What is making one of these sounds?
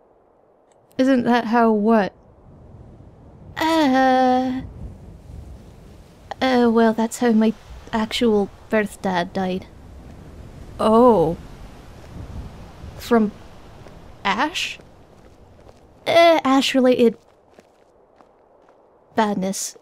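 A man speaks calmly, close by, in short phrases.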